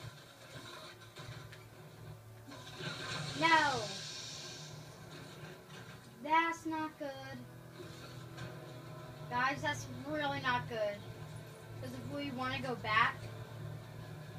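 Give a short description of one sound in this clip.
Video game music and sound effects play from a television.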